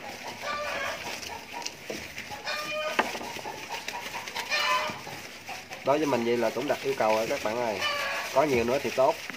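Piglets squeal in short, high bursts.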